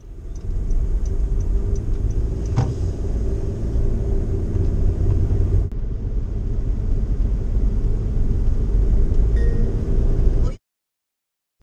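Tyres roll over a wet road.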